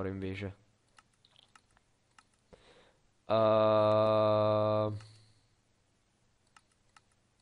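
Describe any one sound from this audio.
Menu buttons click softly.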